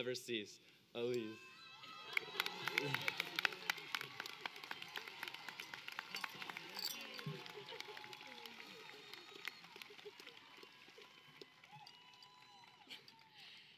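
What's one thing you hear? An audience claps and applauds outdoors.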